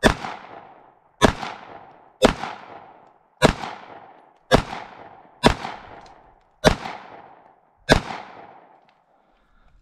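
A pistol fires a series of loud shots outdoors, each ringing out briefly.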